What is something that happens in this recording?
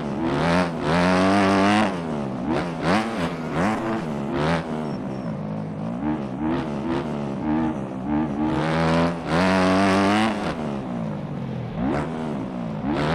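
A motorcycle engine revs up and down loudly, rising and falling in pitch.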